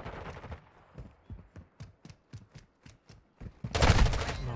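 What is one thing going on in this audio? Footsteps tap quickly in a video game.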